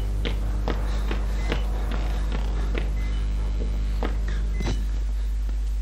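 Footsteps tread slowly on a creaking wooden floor.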